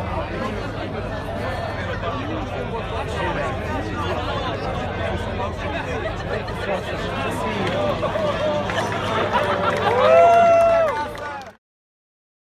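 A large crowd chatters outdoors with many overlapping voices.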